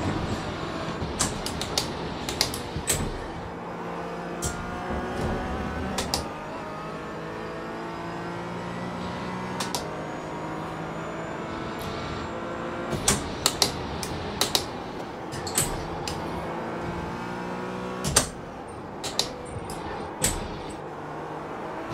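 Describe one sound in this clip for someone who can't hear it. A race car engine roars steadily, rising and falling in pitch as the gears shift.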